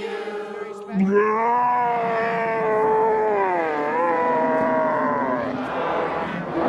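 A man yells and groans loudly in pain.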